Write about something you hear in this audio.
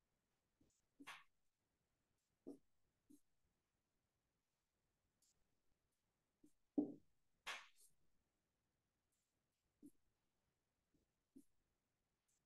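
A marker squeaks and taps faintly on a whiteboard.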